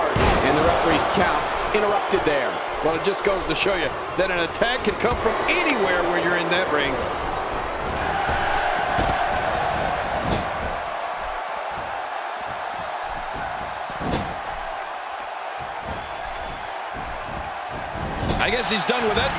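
A crowd cheers and roars throughout a large arena.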